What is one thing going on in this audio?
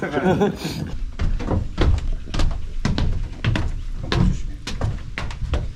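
Footsteps thump on wooden stairs.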